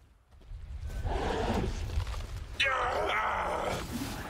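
A monstrous creature speaks in a deep, growling voice.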